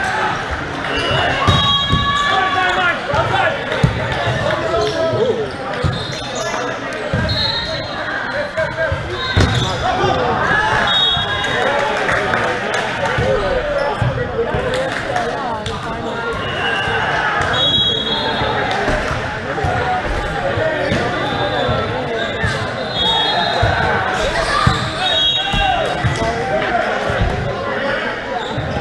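Players' hands strike a volleyball with sharp slaps in an echoing hall.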